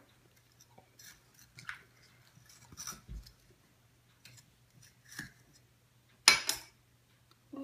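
A knife crunches and scrapes through a firm fruit.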